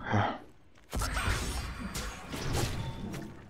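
A blade swings with a sharp whoosh and clash.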